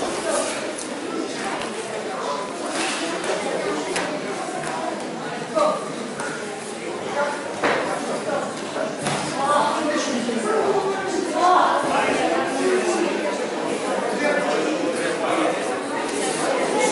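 Voices of young men murmur and talk in a large echoing hall.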